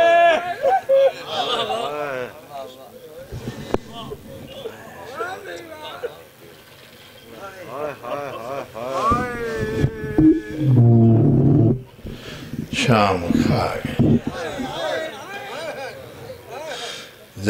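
A man sings a mournful chant through a microphone.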